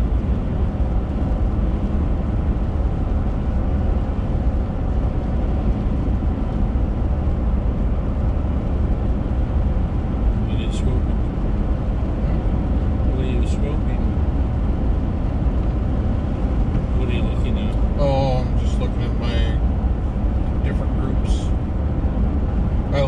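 Tyres roll over a wet road with a steady rush.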